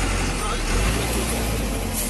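A man talks with animation.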